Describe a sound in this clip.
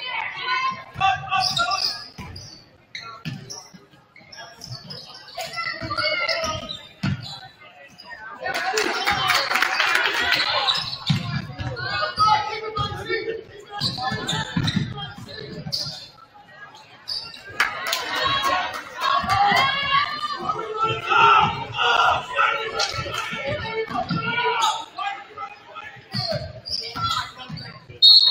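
A crowd cheers and murmurs in a large echoing gym.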